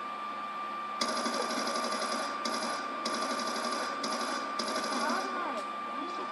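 Rapid gunfire from a video game rattles through a television speaker.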